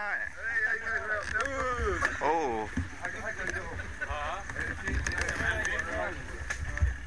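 A man talks close by.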